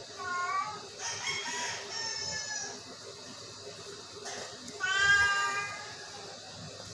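A cat meows loudly several times, close by.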